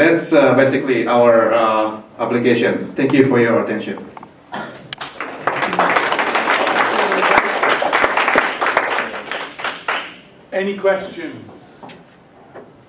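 A young man speaks into a microphone over loudspeakers in an echoing room.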